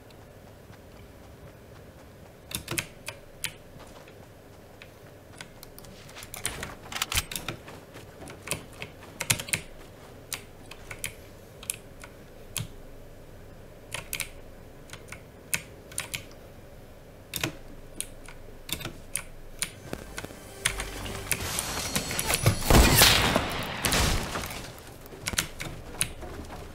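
A game character's footsteps patter quickly across the ground and wooden ramps.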